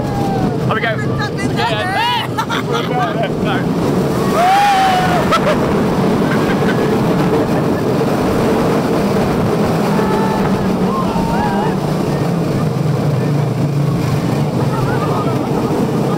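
Young riders scream and shout with excitement close by.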